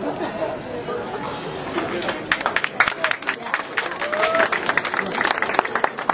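A crowd of men and women chatters outdoors nearby.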